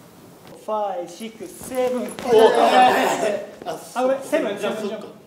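Young men laugh and cheer loudly.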